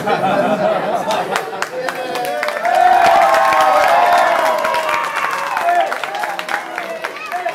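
Children laugh loudly.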